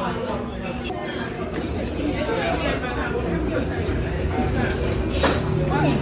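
A metal lid clinks against a metal bowl.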